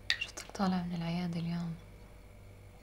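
A woman speaks quietly and tensely nearby.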